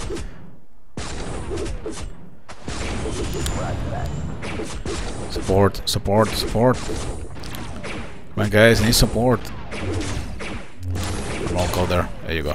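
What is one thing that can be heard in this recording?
Explosions boom repeatedly amid gunfire.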